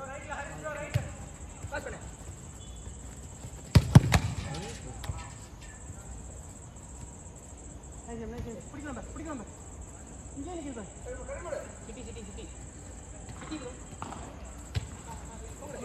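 A football is kicked with a thump.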